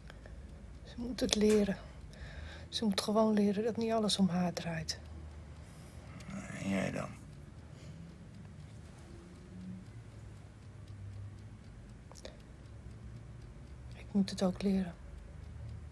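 A man speaks softly and close by.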